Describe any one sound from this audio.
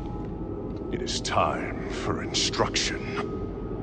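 A man speaks calmly and slowly.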